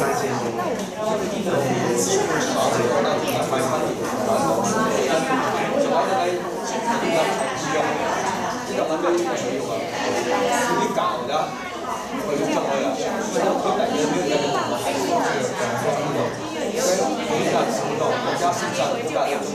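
Many adults chatter at once, close and farther off.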